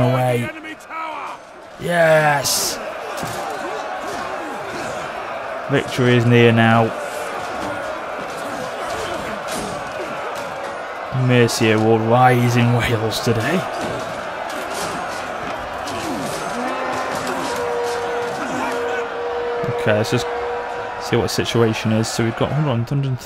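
A great crowd of soldiers roars in battle.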